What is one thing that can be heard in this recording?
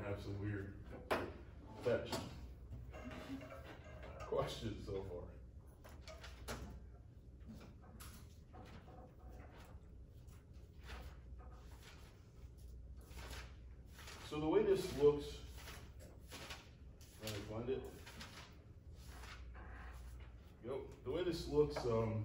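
A man speaks calmly in an echoing room, heard from a distance.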